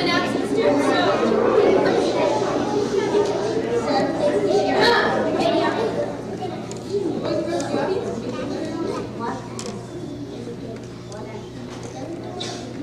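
A children's choir sings together in a large echoing hall.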